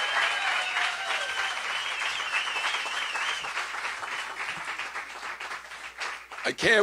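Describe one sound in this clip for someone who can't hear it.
A large crowd cheers and applauds in a big echoing room.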